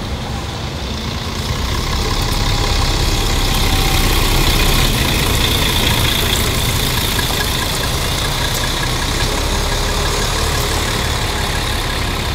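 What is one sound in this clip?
A bus engine rumbles as a bus drives past close by and moves away.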